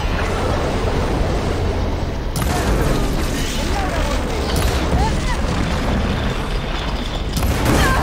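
A huge mechanical beast rumbles and roars loudly.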